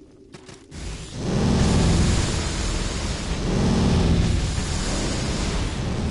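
A deep rumbling roar swells as a giant creature attacks.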